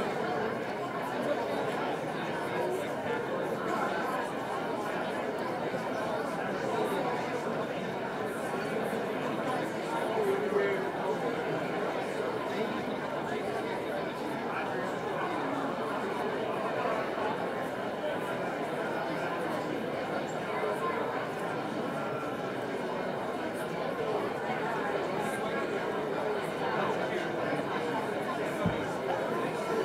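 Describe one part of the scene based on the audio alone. A large audience murmurs and chatters in a big echoing hall.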